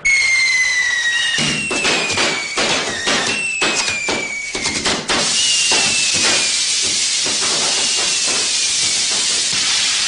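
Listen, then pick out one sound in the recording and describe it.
Fireworks whistle with falling tones.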